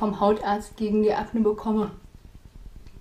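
A young woman speaks close by, clearly and calmly.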